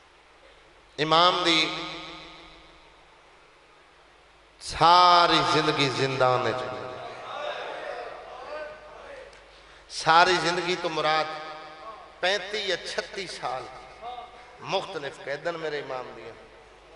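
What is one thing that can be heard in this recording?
A man sings and chants loudly through a microphone, with a large echoing sound.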